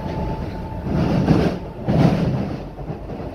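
Train wheels clatter loudly over track joints.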